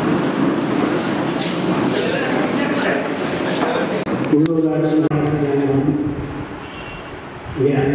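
An elderly man speaks steadily into microphones.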